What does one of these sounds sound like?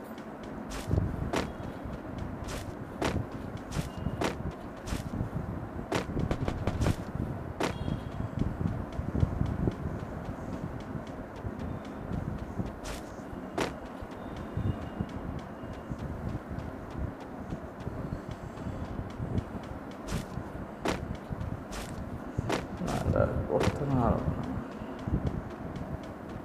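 Footsteps thud quickly on grass and hard ground.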